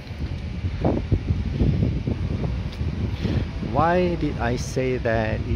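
Wind gusts outdoors, buffeting the microphone with a low rumble.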